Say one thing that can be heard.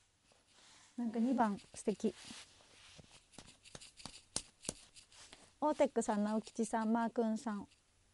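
A young woman speaks brightly and playfully, close to a microphone.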